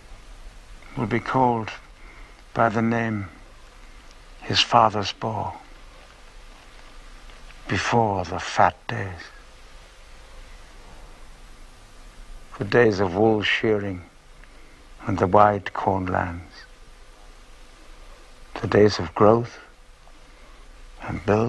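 A man speaks softly in short phrases, close by.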